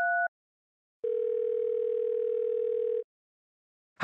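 A phone line rings through the earpiece.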